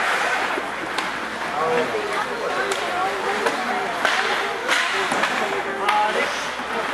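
Hockey sticks clack sharply against a puck now and then.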